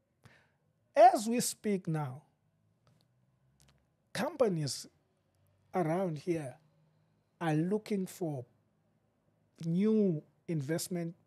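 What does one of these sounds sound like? A middle-aged man speaks calmly and clearly into a close microphone, in short phrases with pauses.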